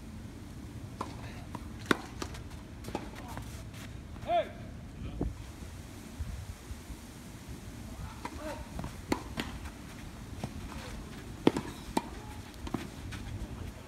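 A tennis ball pops sharply off a racket, back and forth in a rally.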